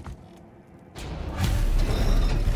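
Heavy wooden gears grind and rumble loudly.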